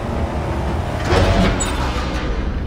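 An elevator door slides open with a heavy whoosh.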